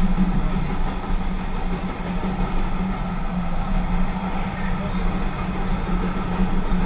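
A train's motor hums with a low, steady drone.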